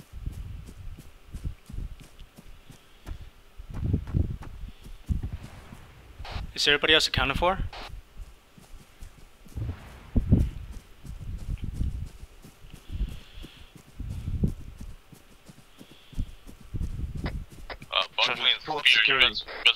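Footsteps crunch and rustle through dry grass.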